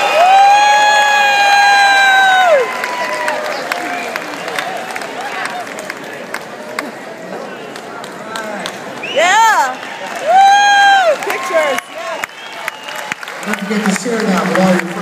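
A large crowd cheers and whistles loudly in an echoing hall.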